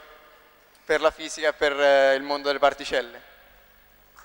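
A young man speaks with animation through a microphone in a large hall.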